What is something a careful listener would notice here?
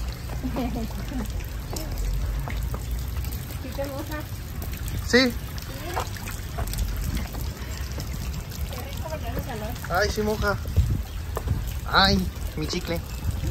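Water streams steadily down a wall.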